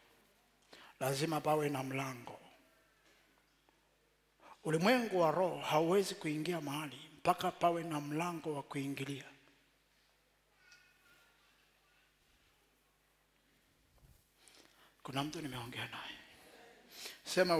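A man preaches with animation through a headset microphone.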